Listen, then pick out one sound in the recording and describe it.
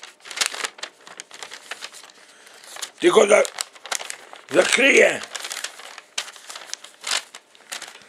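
Paper rustles and crackles close by.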